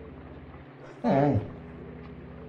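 A man cries out in surprise.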